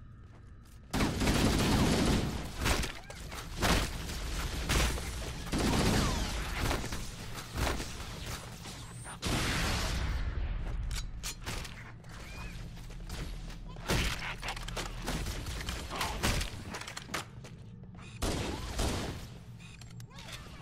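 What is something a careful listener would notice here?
An assault rifle fires in bursts in a video game battle.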